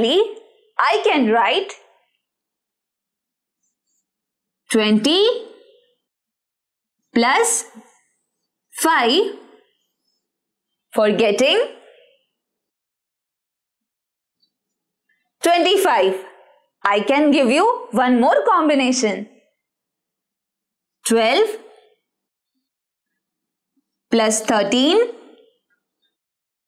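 A young woman speaks clearly and with animation, close to a microphone, in short phrases with pauses.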